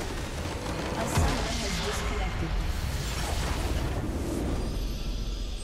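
A base structure shatters with a loud crash.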